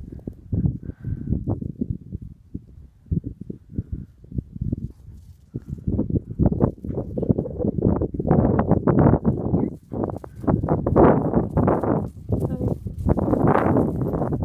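Wind rumbles and buffets against the microphone outdoors.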